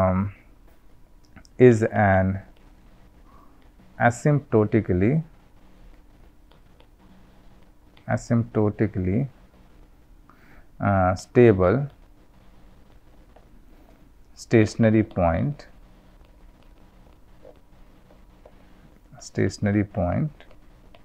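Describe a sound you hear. A man speaks calmly and slowly into a close microphone, with long pauses.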